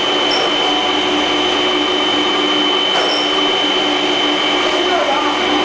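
A grinding machine whirs loudly and steadily with a high whine.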